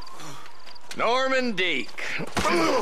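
A man groans in pain close by.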